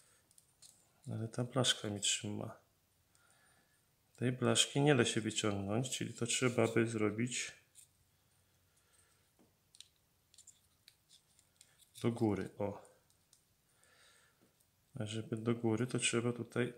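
Small plastic parts click and snap as they are handled.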